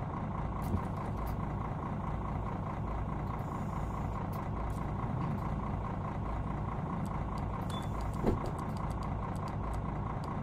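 Bus doors hiss and thump as they open and close.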